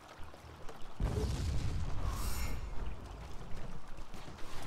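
Magic blasts rumble and crackle in a fight.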